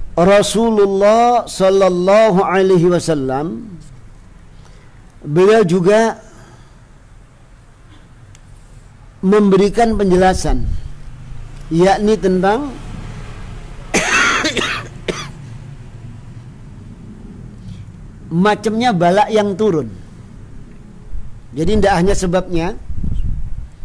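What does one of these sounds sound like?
A middle-aged man chants and reads aloud in a melodic voice, close to a microphone, with pauses.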